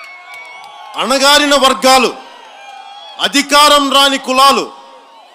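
A man speaks forcefully into a microphone, heard through loudspeakers outdoors.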